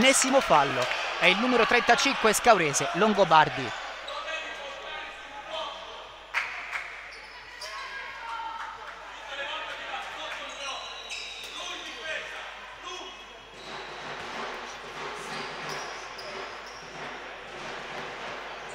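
Sneakers squeak on a wooden court in an echoing hall.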